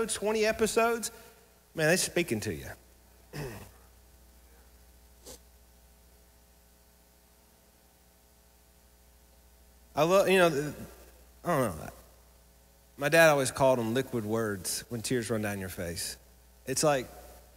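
A man speaks into a microphone with animation, pausing now and then.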